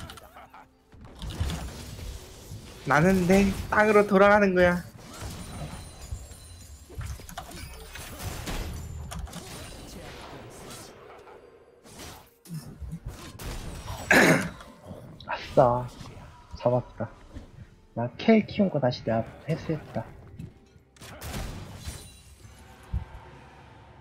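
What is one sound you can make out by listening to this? Video game combat effects clash and whoosh in bursts.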